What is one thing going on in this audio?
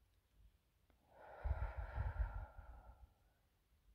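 A middle-aged woman breathes out heavily.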